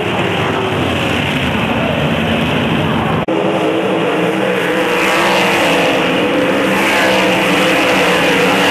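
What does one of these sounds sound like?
Racing car engines roar loudly and steadily.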